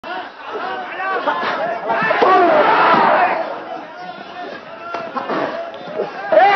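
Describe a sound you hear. A crowd shouts and cheers loudly in a large hall.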